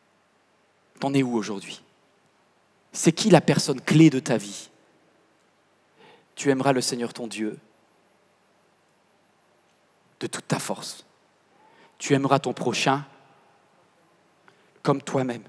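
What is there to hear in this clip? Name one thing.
A man speaks calmly into a headset microphone in short phrases, with pauses.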